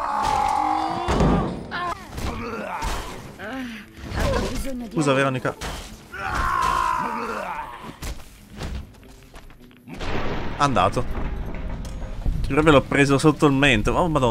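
Gunshots ring out from a game.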